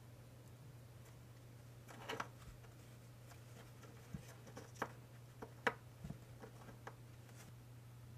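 Small paper pieces tap and click as fingers press them together.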